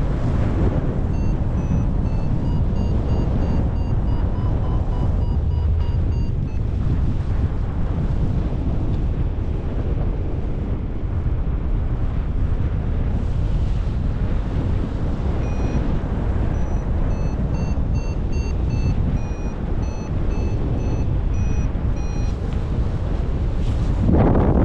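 Wind rushes loudly and steadily past in flight.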